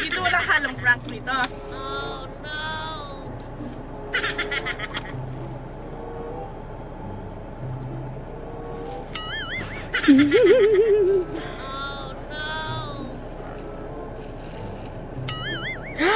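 Plastic wrapping crinkles as a girl unwraps a box.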